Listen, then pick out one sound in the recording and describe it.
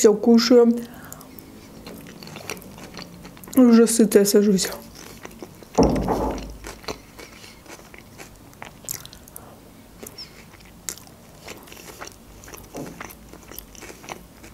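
A young woman chews crunchy lettuce salad close to a microphone.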